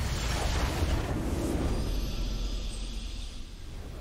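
A game's victory fanfare swells.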